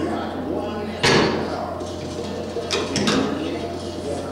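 A weight machine clanks as its weights drop.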